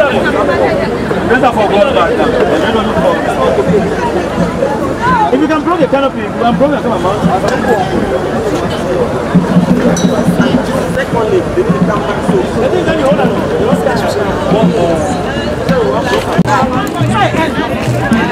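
A crowd of men and women chatters at once outdoors.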